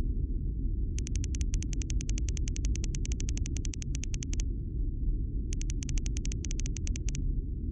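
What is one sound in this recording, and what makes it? Rapid, soft electronic ticks patter in quick bursts.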